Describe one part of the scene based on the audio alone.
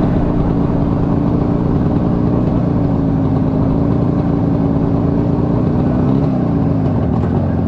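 A motorcycle engine hums steadily up close as the bike rides along.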